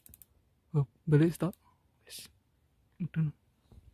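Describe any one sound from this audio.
A rifle scope turret clicks as it is turned by hand.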